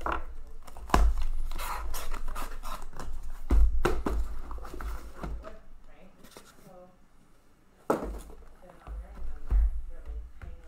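Boxes knock down onto a table.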